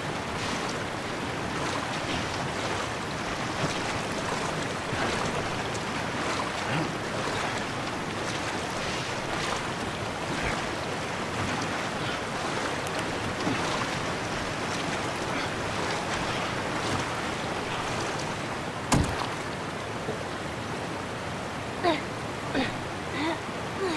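Water rushes and roars steadily.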